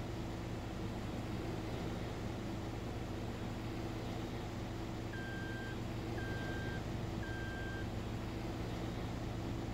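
A combine harvester engine drones steadily and loudly.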